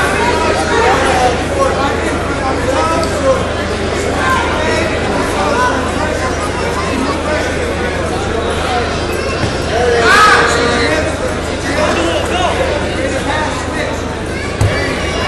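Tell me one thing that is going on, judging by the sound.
A crowd of spectators shouts and cheers loudly.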